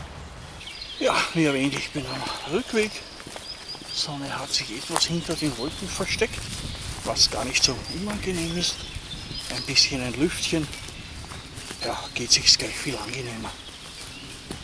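An elderly man talks calmly close by, outdoors.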